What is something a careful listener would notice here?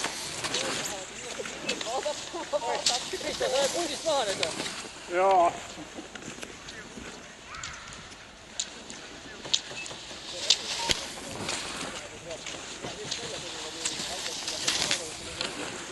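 Ski poles click and crunch into the snow.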